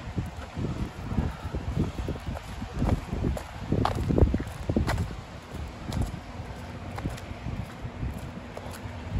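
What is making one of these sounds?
Footsteps crunch and scrape on wet snowy pavement.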